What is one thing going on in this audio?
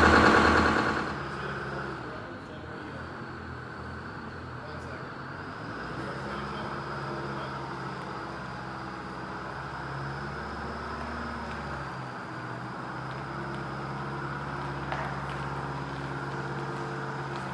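A bus engine hums low and quietly as the bus rolls slowly closer.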